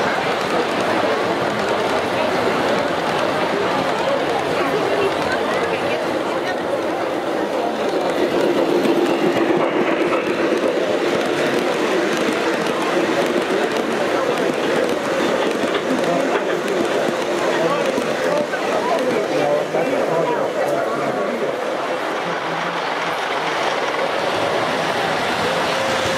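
A crowd murmurs in a large room.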